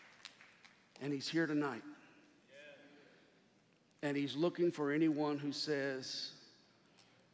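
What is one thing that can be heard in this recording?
A man speaks to an audience through a microphone in a large echoing hall.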